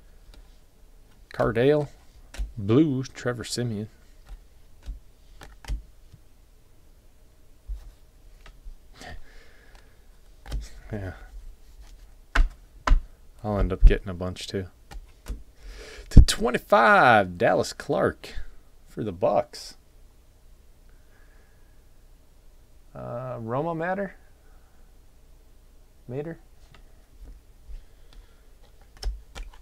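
Trading cards slide and flick against each other in a person's hands.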